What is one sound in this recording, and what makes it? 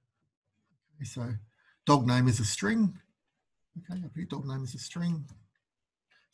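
A man speaks calmly into a microphone, heard as if through an online call.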